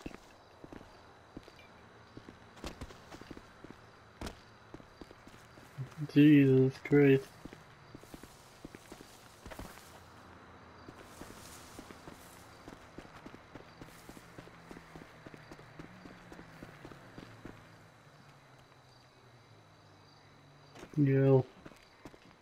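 Footsteps crunch softly through undergrowth.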